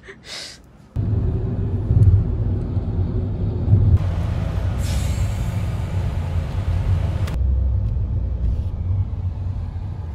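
A car rumbles steadily along a road.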